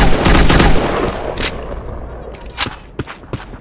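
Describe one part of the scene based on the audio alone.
A rifle is reloaded with metallic clicks.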